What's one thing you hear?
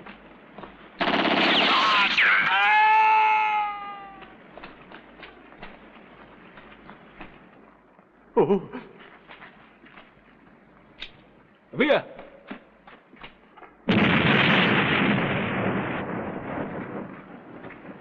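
An explosion booms and rumbles loudly outdoors.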